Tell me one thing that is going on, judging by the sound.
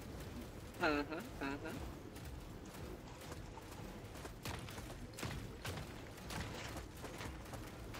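A heavy walking machine stomps with loud metallic footfalls.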